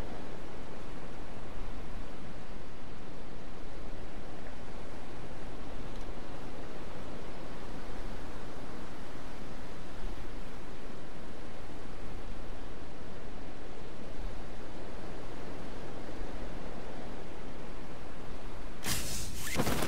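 Wind rushes past a skydiver in free fall.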